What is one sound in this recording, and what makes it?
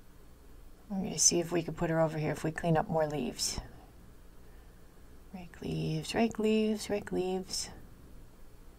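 A young woman speaks playfully into a close microphone.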